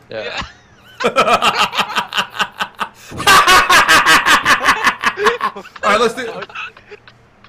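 A young man shouts and laughs loudly into a microphone.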